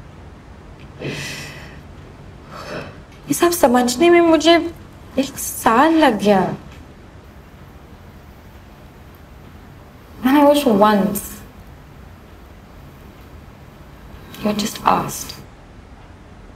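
A young woman speaks softly and emotionally, close by.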